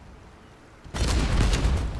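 Guns fire in a rapid, loud burst.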